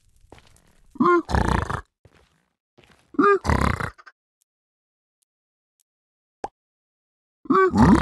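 A piglike creature grunts and snorts in short bursts.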